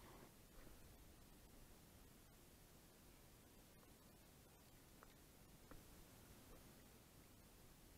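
A fishing reel clicks as its handle turns.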